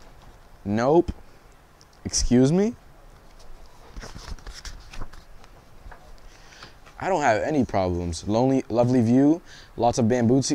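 A young man reads aloud expressively, close by.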